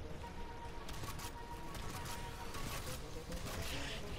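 A rifle fires short bursts of gunshots.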